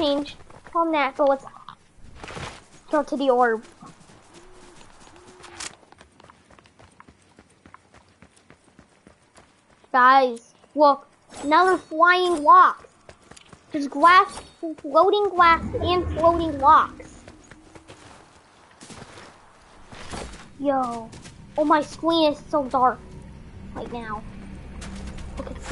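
Footsteps run over grass and gravel.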